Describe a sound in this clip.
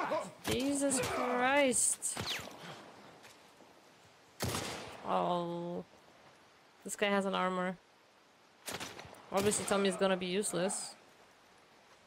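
A young woman talks into a microphone close up, with animation.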